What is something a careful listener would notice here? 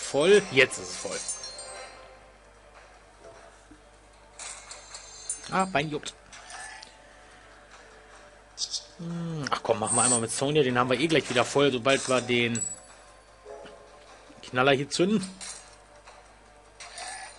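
Bright game chimes and whooshes sound in bursts.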